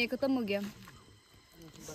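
Plastic packaging crinkles.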